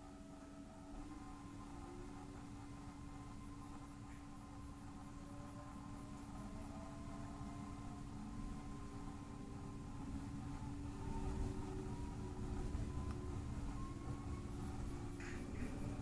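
An electric motor whines, rising in pitch as the train gathers speed.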